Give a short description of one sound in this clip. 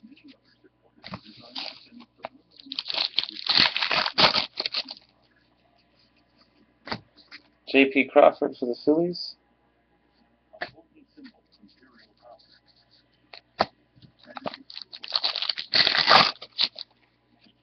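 A plastic wrapper crinkles and rustles loudly.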